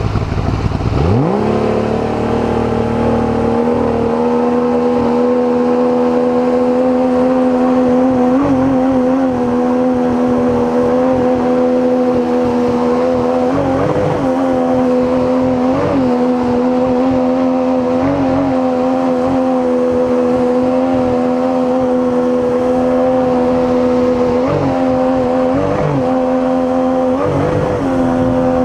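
An outboard motor revs up and then drones steadily.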